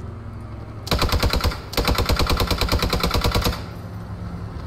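A machine gun fires rapid bursts nearby.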